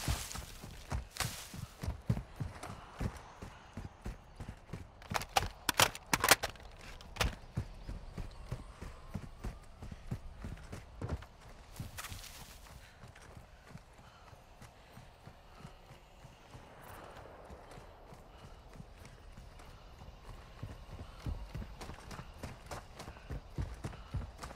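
Footsteps crunch quickly over rough ground and gravel.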